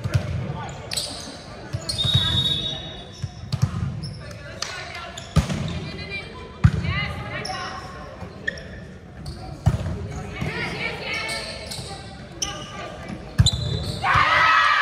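Young women players call out and shout to each other.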